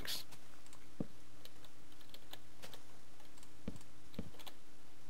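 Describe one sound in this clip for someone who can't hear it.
Wooden blocks knock softly as they are placed, one after another.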